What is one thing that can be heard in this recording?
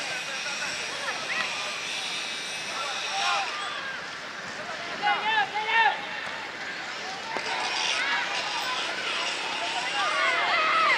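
Young men shout and call out across an open field.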